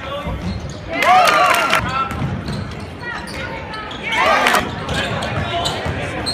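A crowd cheers loudly.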